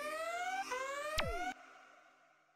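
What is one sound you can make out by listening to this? A video game warning alarm sounds with quick rising beeps.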